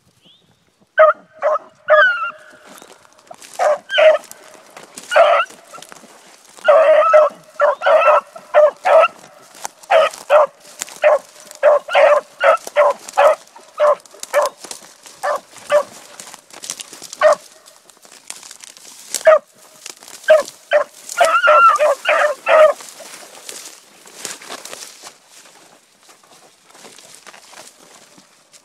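Dry grass and twigs rustle as dogs push through brush.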